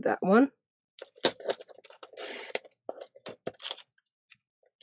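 Paper slides and rustles.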